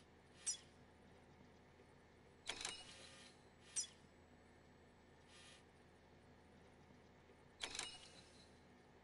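Short electronic menu chimes beep now and then.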